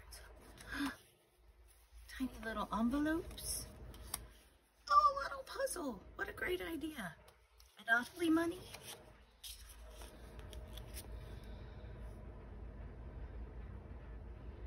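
Paper cards rustle and slide as they are handled.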